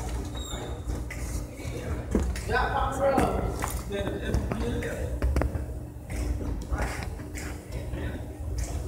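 Shoes scuff and tap on a hard floor in a large echoing hall.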